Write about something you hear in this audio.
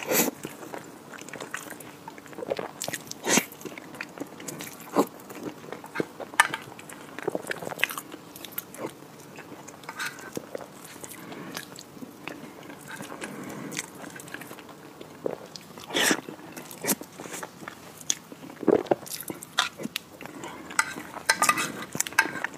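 A spoon scrapes and clicks against a glass dish.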